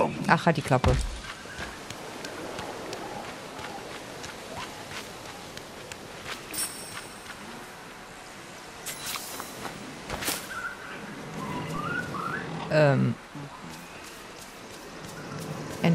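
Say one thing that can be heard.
Light footsteps patter quickly on a dirt path.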